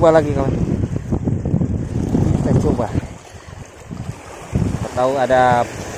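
Small waves splash against rocks.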